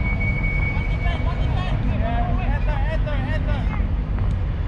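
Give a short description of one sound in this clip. Men shout and call to each other in the distance outdoors.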